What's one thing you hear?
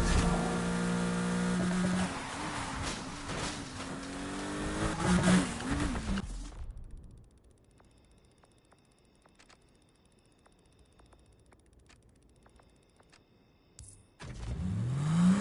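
A car engine revs loudly and then settles.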